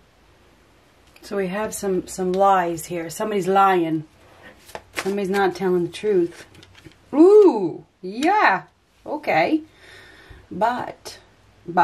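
Playing cards are laid softly on a cloth.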